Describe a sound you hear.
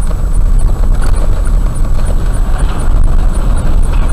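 A lorry roars past close by.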